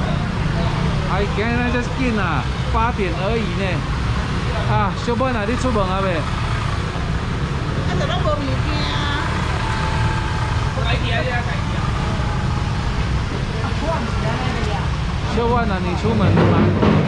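A woman and a man talk nearby with animation.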